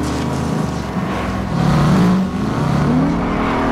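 Tyres skid and crunch over loose dirt.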